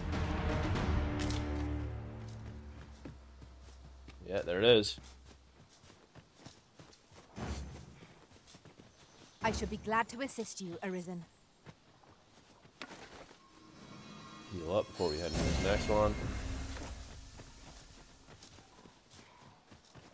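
Footsteps brush through grass.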